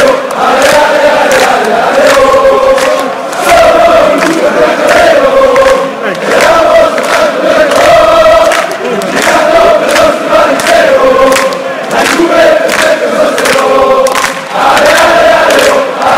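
A large crowd of men chants loudly in unison in a big echoing arena.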